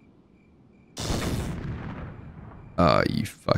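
A grenade explodes with a sharp blast that fades out.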